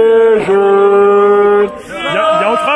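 A man shouts through a megaphone up close.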